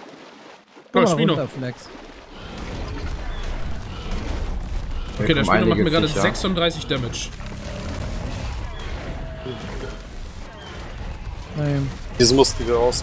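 A large creature growls and roars loudly.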